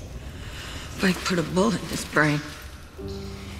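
A young woman speaks quietly and tensely close by.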